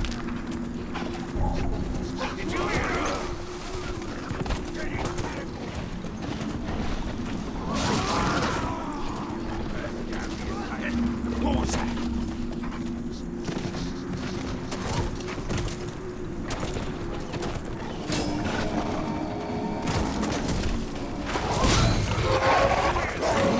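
A large beast's heavy footsteps thud quickly along the ground.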